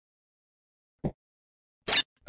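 A short electronic blip sounds as a menu choice changes.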